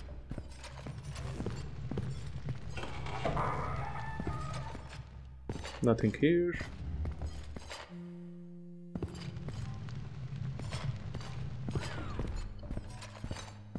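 Footsteps tread on stone in an echoing passage.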